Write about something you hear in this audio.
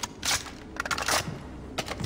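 A rifle clicks and rattles as it is swapped for another.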